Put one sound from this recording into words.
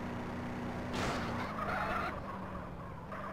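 Car tyres screech in a skid.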